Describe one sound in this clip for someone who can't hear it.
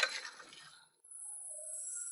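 Water gushes and splashes out of a hose onto rocks.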